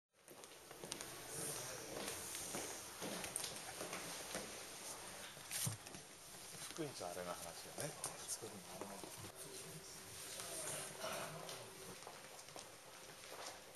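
Several men talk nearby in a lively way.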